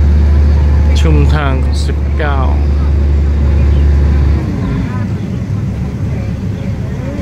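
A train rolls along with a steady low rumble.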